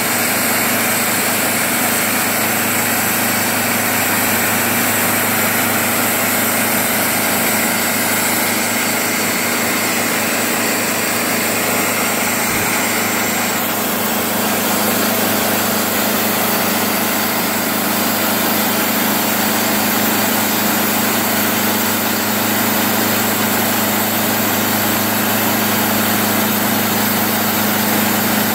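An engine runs loudly and steadily close by.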